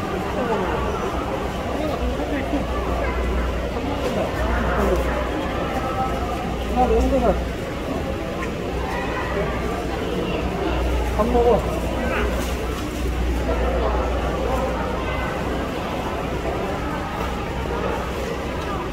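A panda crunches and chews bamboo leaves.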